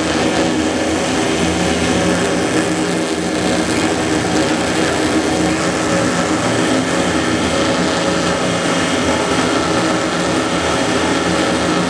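A power tool grinds loudly against rubber with a steady whine.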